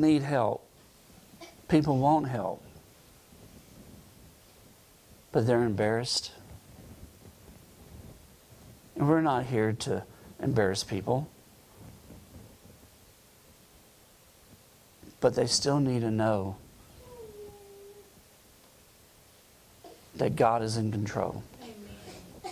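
A middle-aged man speaks into a microphone in slow, emphatic bursts with long pauses.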